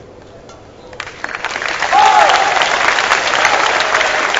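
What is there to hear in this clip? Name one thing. A crowd applauds in a large hall.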